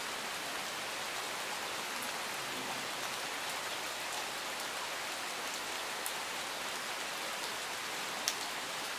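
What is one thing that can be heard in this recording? Steady rain falls outdoors, hissing on leaves and gravel.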